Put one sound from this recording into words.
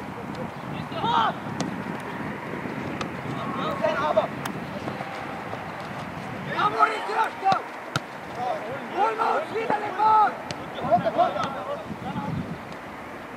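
Teenage boys shout to each other across an open field.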